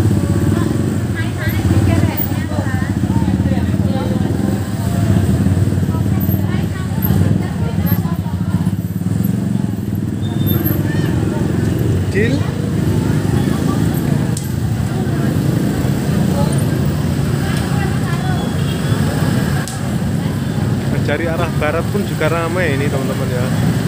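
A busy crowd chatters all around outdoors.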